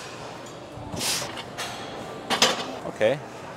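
A barbell clanks as it is set back on its rack.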